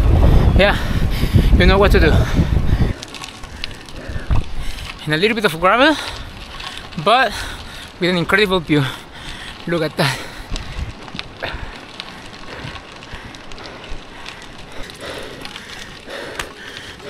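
Bicycle tyres crunch over gravel.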